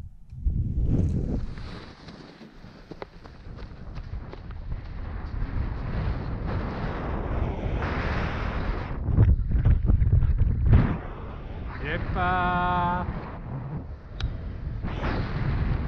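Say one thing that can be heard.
Wind blusters loudly against a microphone outdoors.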